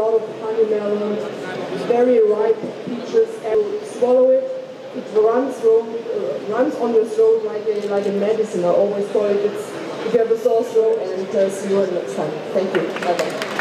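A middle-aged woman speaks steadily into a microphone.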